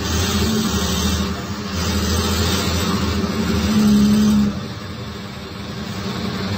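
An inline six-cylinder diesel city bus engine drones, heard from inside the bus.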